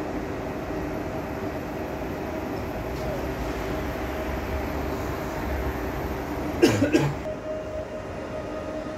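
A train rumbles and hums as it slowly approaches, outdoors.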